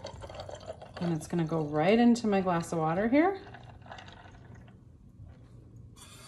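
Liquid drips and trickles into a glass of ice.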